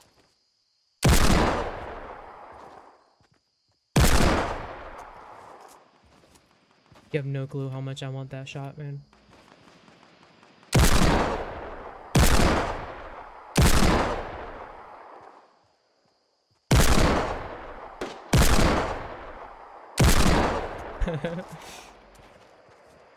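Loud gunshots ring out one at a time, each echoing away.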